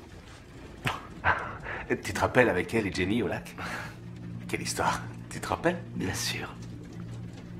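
A man laughs nearby.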